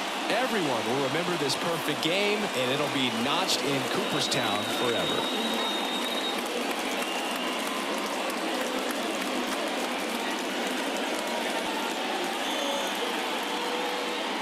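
A large crowd cheers steadily.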